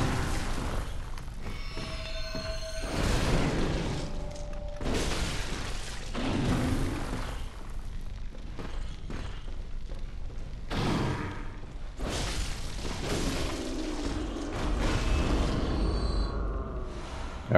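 A blade swings and slashes with sharp whooshes.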